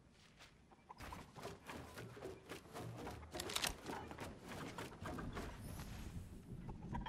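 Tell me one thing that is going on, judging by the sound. Wooden panels clatter and knock rapidly into place.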